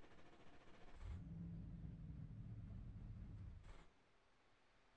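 A race car engine idles with a low hum.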